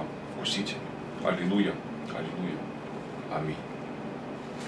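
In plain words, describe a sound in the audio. A man speaks briefly, close by.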